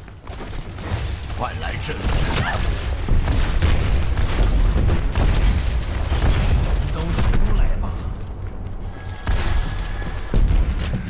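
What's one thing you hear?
Gunfire and explosions from a game crackle and boom.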